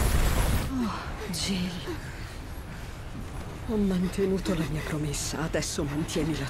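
A young woman speaks in a shaken, pained voice close by.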